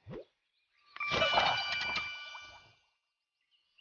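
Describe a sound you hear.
A bright game jingle rings out.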